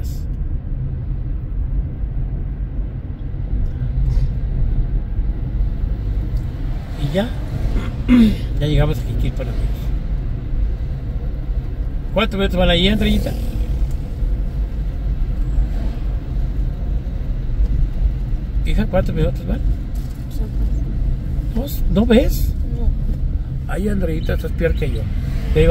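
A car drives along a road with a steady low rumble of tyres and engine.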